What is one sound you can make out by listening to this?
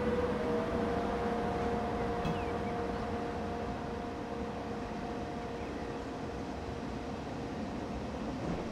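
An electric locomotive hums with a steady whine as it moves away.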